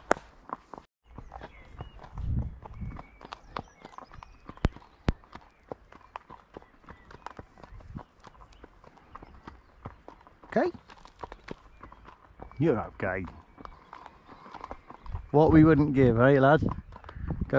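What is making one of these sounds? A horse's hooves clop steadily on a hard path.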